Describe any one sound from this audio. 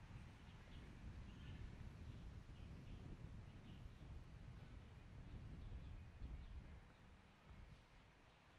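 Wind gusts and rumbles outdoors, then dies down.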